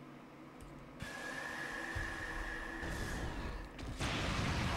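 Video game laser shots fire with a high whine.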